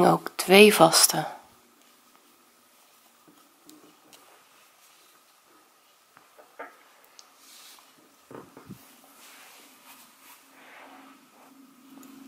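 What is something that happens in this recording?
Yarn rustles softly as a crochet hook pulls it through stitches.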